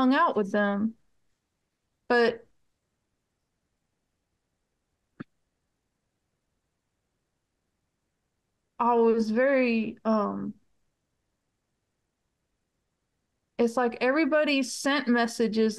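A middle-aged woman speaks calmly over an online call, in bursts with pauses.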